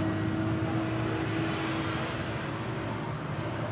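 A car drives past on the road with tyres humming.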